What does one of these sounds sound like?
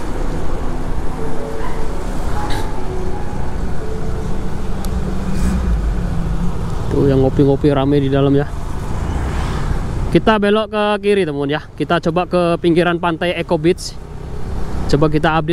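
Motor scooters hum as they ride past.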